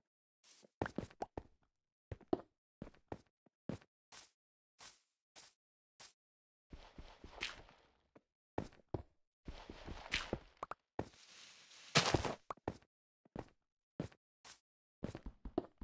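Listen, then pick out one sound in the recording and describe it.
Stone blocks knock and crunch in quick short bursts.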